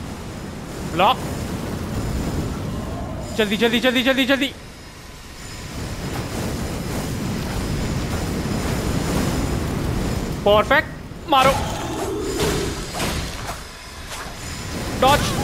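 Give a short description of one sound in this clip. A huge creature growls and roars.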